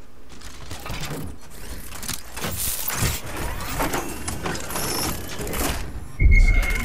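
An electronic device hums and crackles with sparking sounds.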